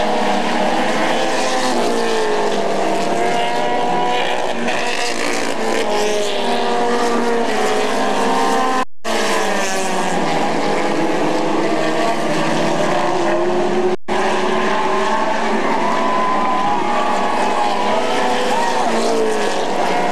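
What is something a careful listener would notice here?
Race car engines roar as cars speed around a track.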